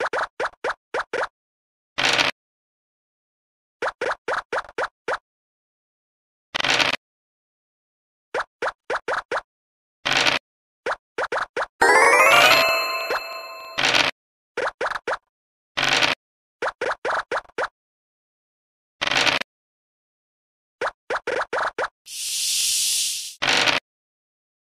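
Game tokens hop along in quick tapping steps.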